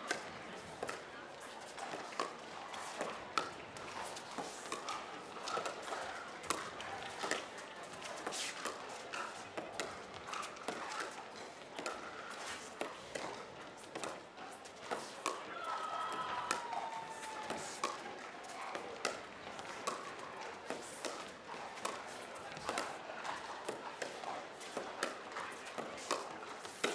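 Paddles strike a plastic ball with sharp pops in a quick rally.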